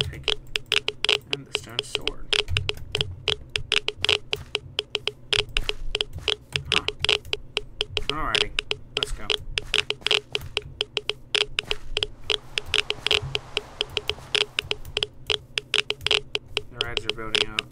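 Quick footsteps crunch steadily over grass and stone.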